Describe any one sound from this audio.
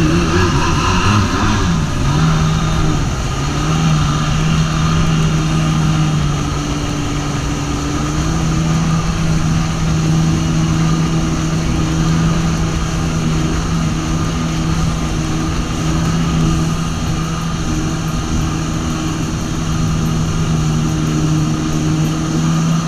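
A jet ski engine hums steadily, rising and then settling to an idle.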